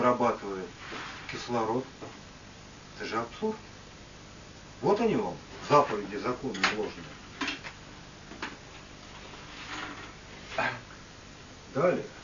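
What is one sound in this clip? A man speaks slowly and calmly, with pauses.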